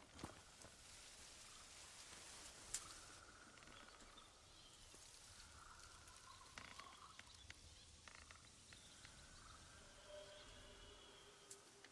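Hooves clop slowly on soft ground.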